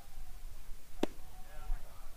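A bat cracks sharply against a baseball.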